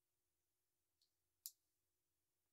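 Small plastic bricks click as fingers press them together.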